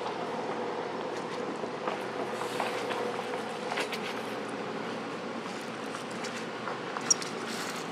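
Dry leaves rustle as monkeys shift on the ground.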